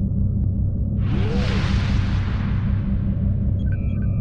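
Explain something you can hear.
A spaceship whooshes forward in a rushing surge that slowly fades.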